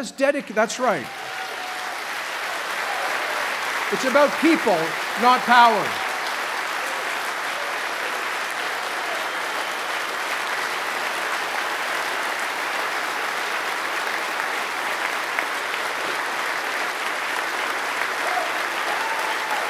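A large crowd applauds steadily.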